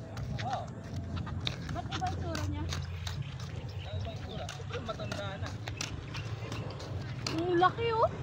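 Sandals slap on concrete as a woman walks.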